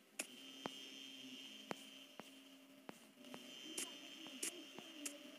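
Footsteps tap steadily along an indoor hallway.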